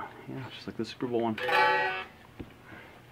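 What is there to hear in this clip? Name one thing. A guitar is strummed briefly.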